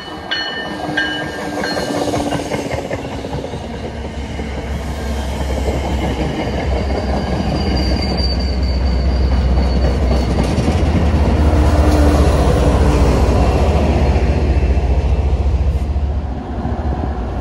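A train rumbles and clatters past along the tracks.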